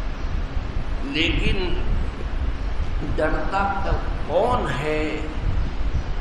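An elderly man speaks slowly and calmly.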